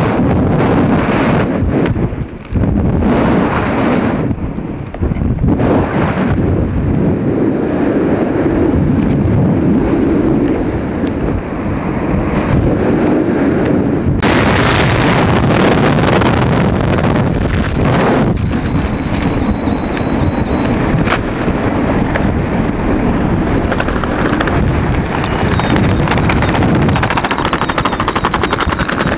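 Strong wind roars steadily past a microphone.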